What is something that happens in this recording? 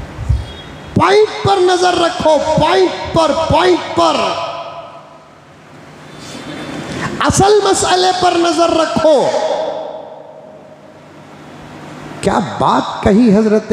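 A man speaks or chants with feeling into a microphone, in phrases with pauses.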